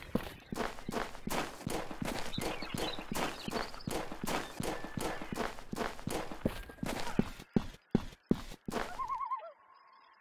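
A heavy machine gun fires rapid bursts of shots.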